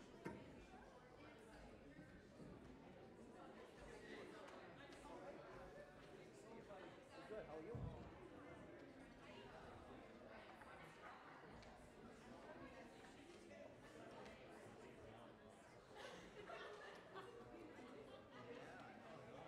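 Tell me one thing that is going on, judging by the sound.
Men and women talk and murmur nearby in a large echoing hall.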